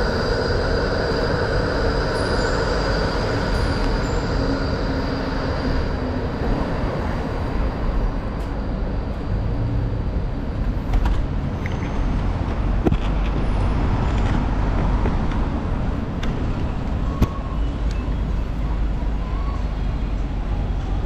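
Steady city traffic rumbles outdoors.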